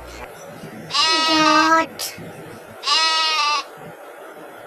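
A goat bleats.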